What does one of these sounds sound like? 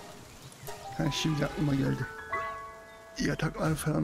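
A game menu chimes with a quick rising run of bright tones.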